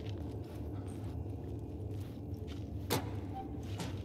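A metal locker door clanks open.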